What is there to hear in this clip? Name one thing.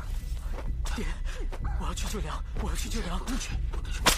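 A young man speaks urgently, close by.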